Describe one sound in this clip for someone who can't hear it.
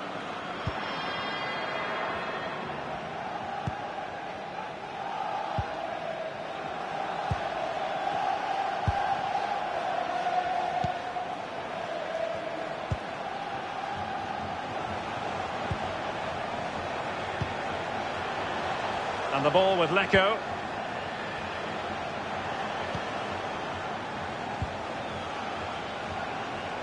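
A stadium crowd roars steadily throughout.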